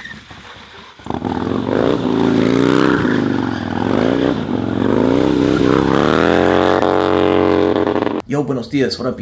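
A motorcycle engine revs loudly, rising and falling in pitch.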